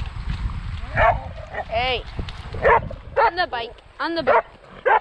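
A dog whines and yelps.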